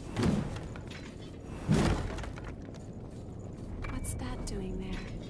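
A heavy sword swings and whooshes through the air.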